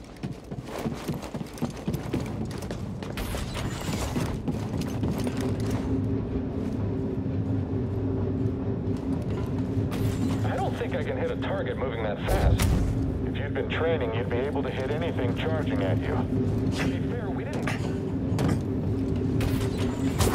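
Footsteps run across a metal floor.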